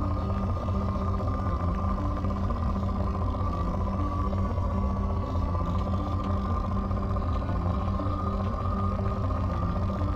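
An electronic scanner hums steadily with a low pulsing drone.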